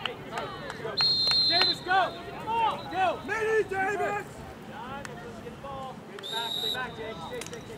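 A referee's whistle blows in short, sharp blasts.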